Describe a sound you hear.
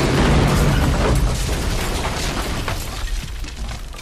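Gunshots crack rapidly in bursts.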